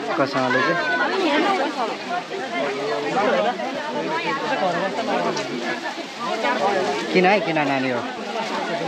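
Young girls talk and chatter excitedly close by.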